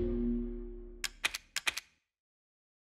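Short electronic beeps click through a menu.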